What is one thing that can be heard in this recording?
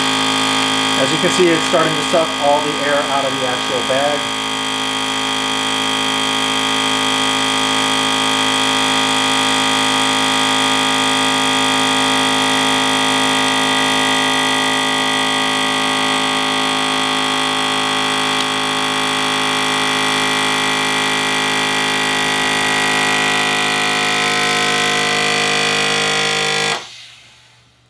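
A vacuum sealer hums steadily.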